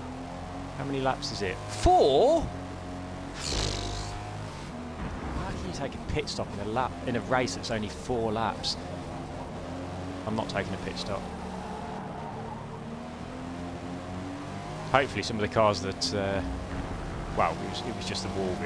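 Tyres squeal through corners.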